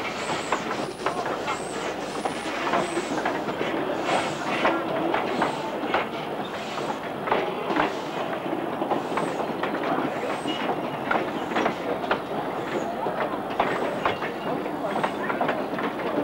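A small steam locomotive chuffs rhythmically as it pulls away.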